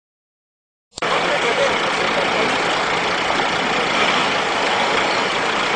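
An armoured vehicle's engine runs.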